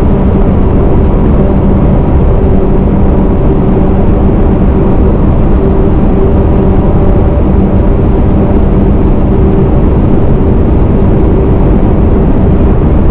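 A truck engine drones steadily while driving along a road.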